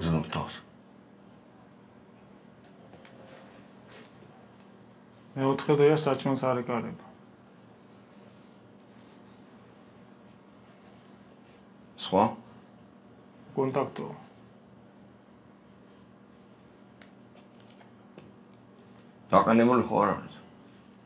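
A middle-aged man speaks close by in short, tense bursts with pauses between them.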